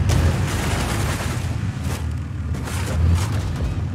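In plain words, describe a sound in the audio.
Vehicles crash into each other with a metallic crunch.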